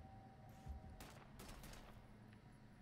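A gun fires a short burst of loud shots.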